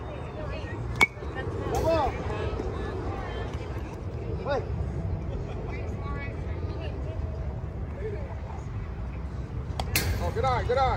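A metal bat cracks against a ball.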